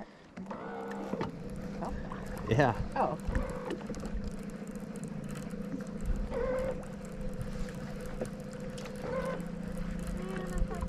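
An electric outboard motor hums steadily.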